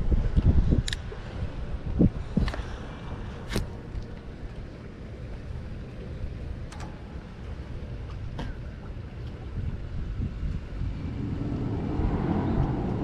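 Wind blows outdoors, rumbling across the microphone in gusts.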